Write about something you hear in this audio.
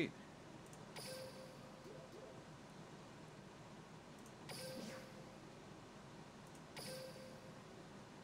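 A game menu plays short chimes as options are confirmed.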